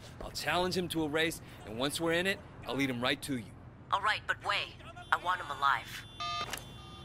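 A man talks calmly on a phone.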